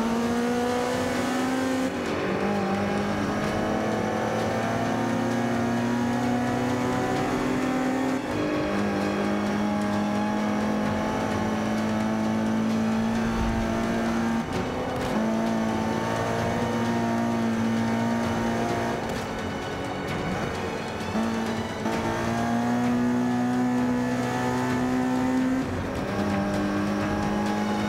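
A racing car engine roars steadily, dropping in pitch at each gear change and climbing again.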